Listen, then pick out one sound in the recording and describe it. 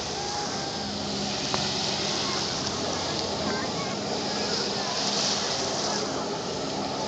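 A jet ski engine roars steadily across the water.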